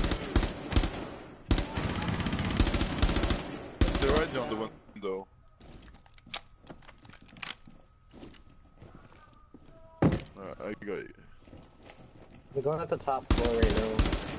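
A rifle fires rapid bursts of gunshots indoors.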